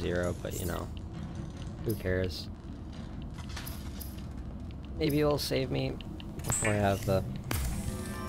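Electrical sparks crackle and fizz from a damaged panel.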